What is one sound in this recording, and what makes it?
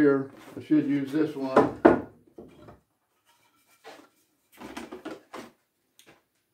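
Wooden pieces knock and scrape together.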